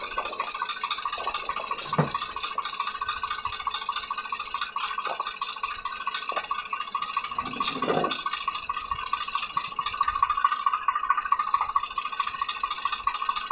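Wet mud squelches and splashes as men dig at a stuck wheel.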